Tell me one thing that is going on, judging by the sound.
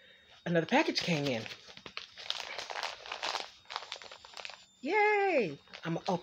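Paper rustles as an envelope is handled.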